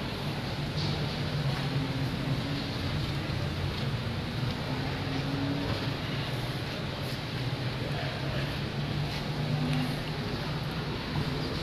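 A crowd murmurs steadily in a large, echoing hall.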